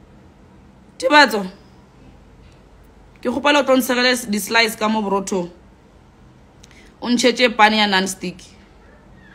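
A young woman speaks calmly and softly close to a phone microphone, with long pauses.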